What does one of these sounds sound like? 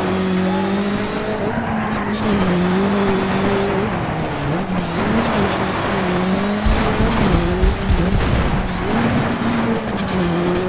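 Tyres crunch and skid over loose gravel.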